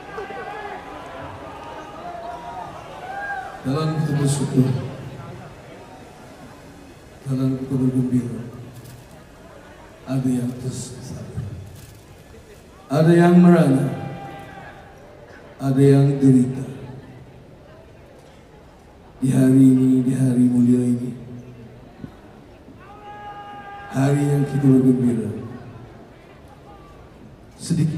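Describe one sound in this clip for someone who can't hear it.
A rock band plays loud, short bursts of music through big speakers in a large echoing hall.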